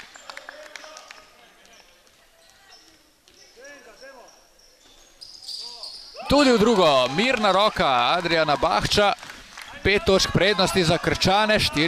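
A basketball bounces on a wooden floor in a large echoing hall.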